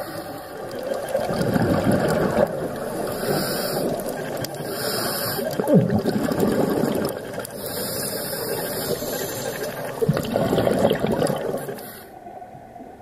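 A diver breathes out through a regulator, with bubbles rushing and gurgling underwater in bursts.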